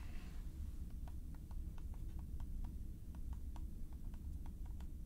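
Fingertips tap lightly and steadily on a hard surface.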